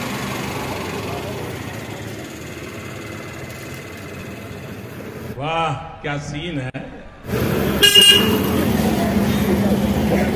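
A motorcycle engine runs close by.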